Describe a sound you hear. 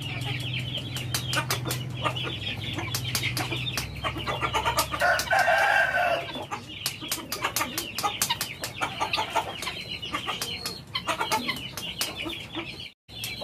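Chickens peck at scraps on hard ground.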